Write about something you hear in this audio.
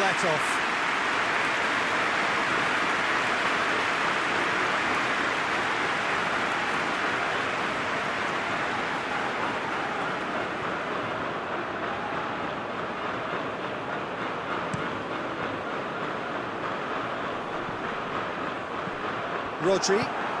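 A large stadium crowd roars and murmurs steadily throughout.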